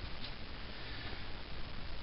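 A hand rustles softly against fur and fabric.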